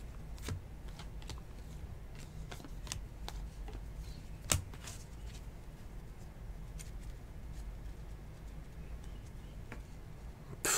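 Trading cards flick and rustle as hands shuffle through them.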